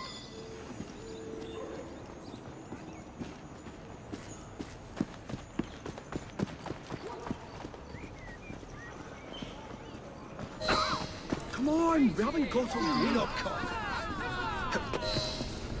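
Footsteps crunch on gravel and cobbles.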